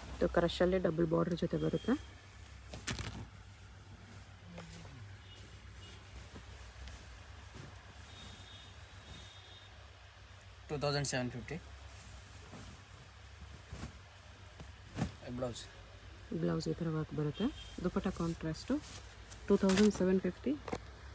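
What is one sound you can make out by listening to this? Silk fabric rustles and swishes as it is spread out.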